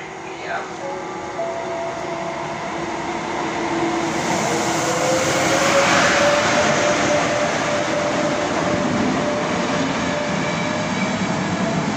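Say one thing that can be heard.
A passenger train approaches and rushes loudly past close by.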